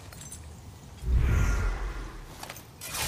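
A magical burst whooshes and crackles.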